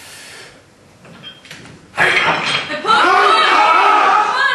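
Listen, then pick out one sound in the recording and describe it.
A weight plate rattles as a barbell is lifted.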